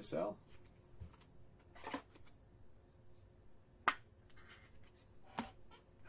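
A card snaps into a stiff plastic sleeve.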